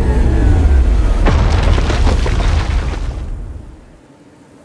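A large creature rushes past with a deep rumbling whoosh.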